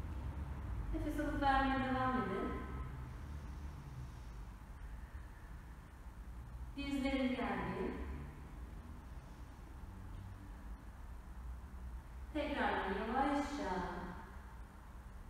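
A young woman speaks slowly and calmly, close by.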